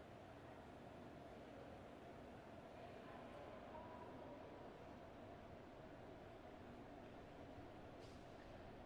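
Indistinct chatter of people echoes through a large hall.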